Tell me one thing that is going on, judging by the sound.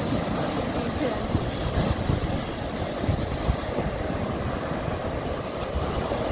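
Waves break and wash up onto a sandy shore.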